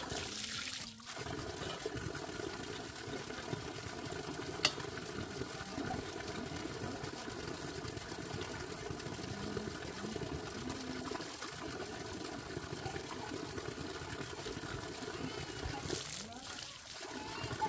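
Water pours from a pipe and splashes steadily onto the ground.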